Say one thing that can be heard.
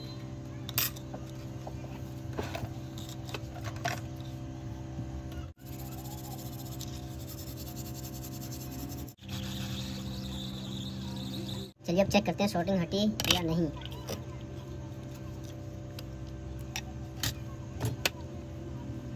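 A small circuit board clicks and taps against a hard surface.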